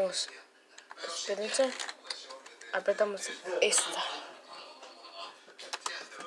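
Keyboard keys click as they are pressed.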